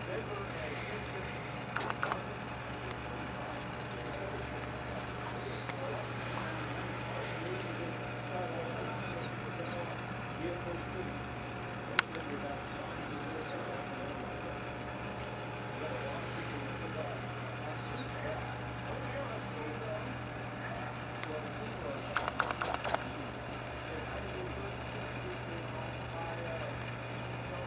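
A cat licks another cat's fur with soft, wet lapping sounds.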